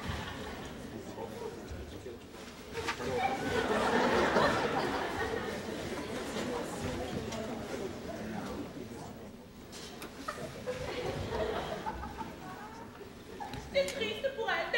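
Bare feet thump and slide on a wooden stage.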